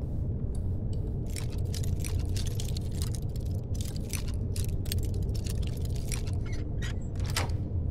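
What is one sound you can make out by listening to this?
A lockpick scrapes and clicks inside a metal lock.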